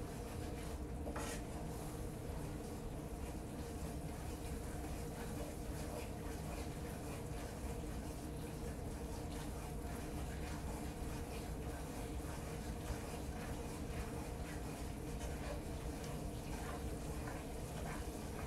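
Food sizzles steadily in a frying pan.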